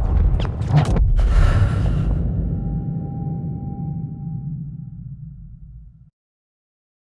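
A low rumble of battle fades away slowly.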